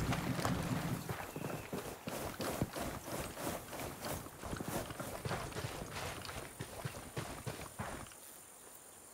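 Footsteps crunch quickly on dry ground.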